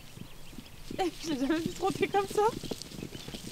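A horse whinnies loudly.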